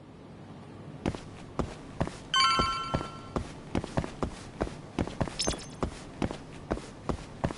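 Footsteps thud steadily up hard stairs.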